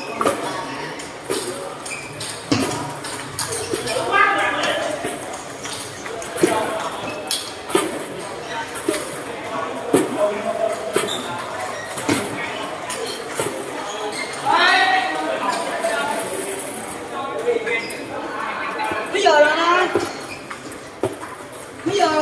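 Children and young people chatter and call out nearby.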